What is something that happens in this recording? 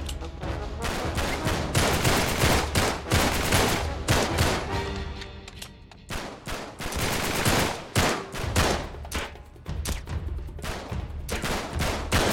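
Gunshots fire in quick bursts and echo in a tunnel.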